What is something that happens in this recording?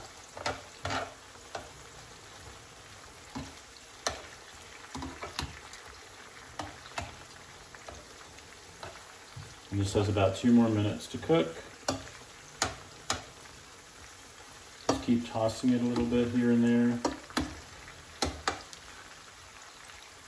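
Metal tongs click and scrape against a ceramic-coated pan.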